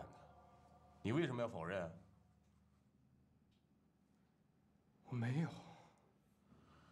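A younger man answers hesitantly, close by.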